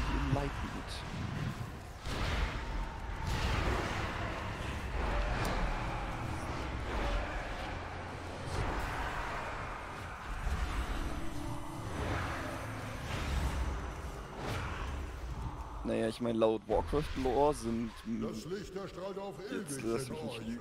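Magical spell effects whoosh, crackle and boom in quick bursts.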